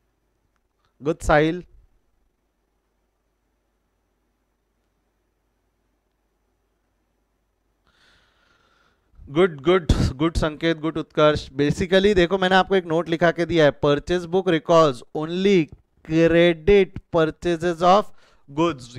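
A man speaks calmly and with animation into a close microphone.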